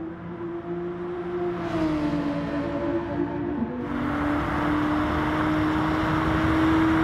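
A racing car engine roars loudly at high speed.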